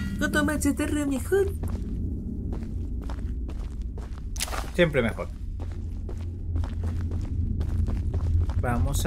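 Footsteps thud on wooden planks in a tunnel.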